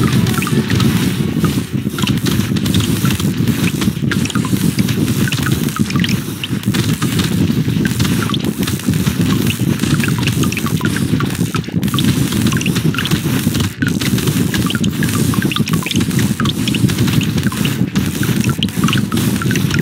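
Rapid game gunfire crackles without pause.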